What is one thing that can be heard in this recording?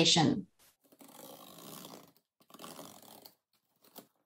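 A blade slices through packing tape on a cardboard box.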